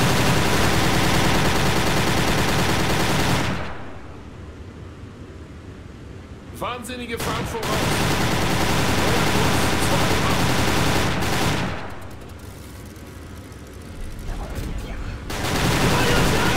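An anti-aircraft gun fires in rapid bursts.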